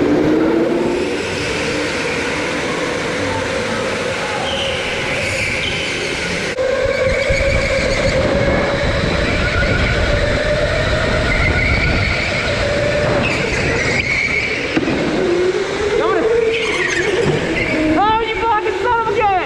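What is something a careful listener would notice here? Go-kart electric motors whine, rising and falling in pitch.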